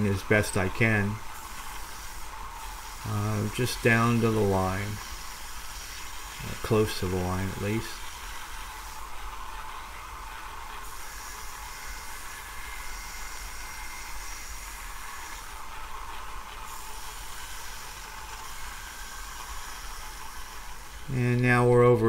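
A belt sander runs with a steady whirring hum.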